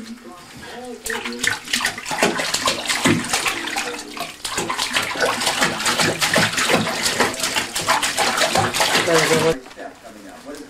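Water splashes and trickles in a bathtub.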